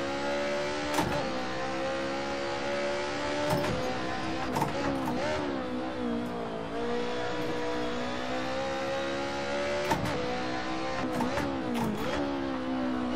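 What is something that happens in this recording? Gear shifts clunk sharply now and then.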